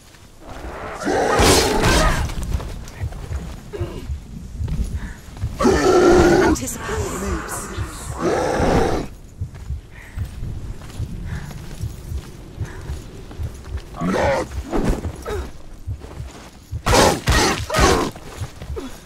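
A sword whooshes through the air in quick slashes.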